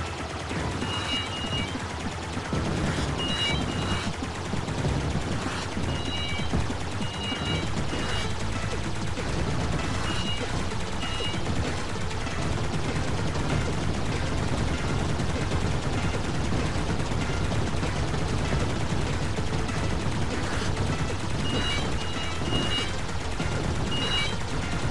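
Short electronic chimes ring out now and then.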